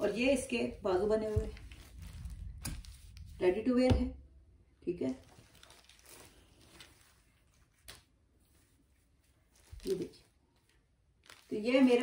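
Cloth rustles and swishes as it is handled.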